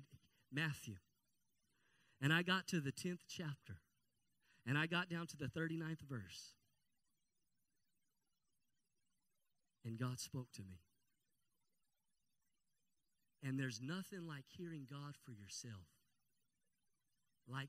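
A man talks with animation into a microphone, heard through loudspeakers, with pauses between phrases.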